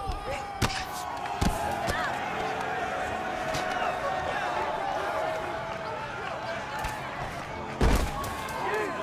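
Heavy thuds of bodies and blows land now and then.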